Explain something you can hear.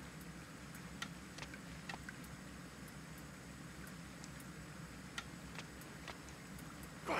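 Footsteps tap on a stone floor in an echoing space.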